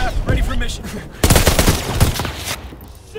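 Gunshots crack in a rapid burst.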